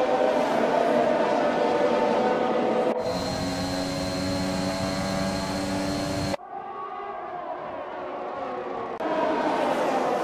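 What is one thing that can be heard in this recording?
A racing car engine screams at high revs and shifts gears.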